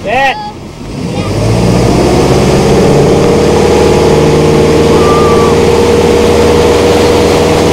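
A motorboat engine roars and rises in pitch as it pulls away.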